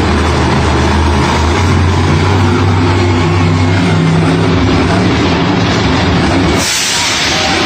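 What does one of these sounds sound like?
A monster truck engine roars and revs loudly.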